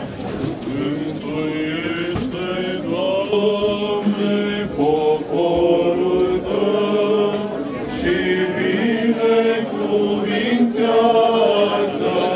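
Men chant together in long, sustained melodic tones.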